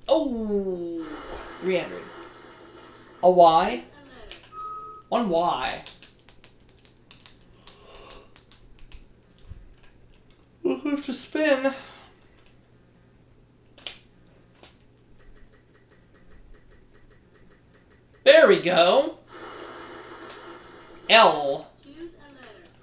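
Electronic game music plays from a television speaker.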